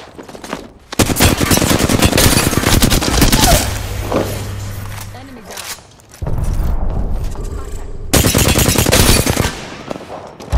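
Rapid gunfire blasts in quick bursts.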